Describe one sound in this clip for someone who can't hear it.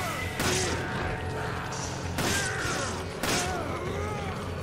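Blows and gunfire ring out in a fight.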